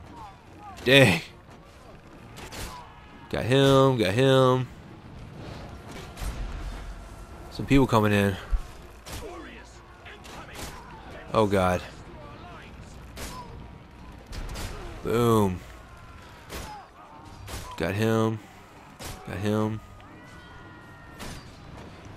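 A heavy siege crossbow fires bolts again and again with sharp thuds.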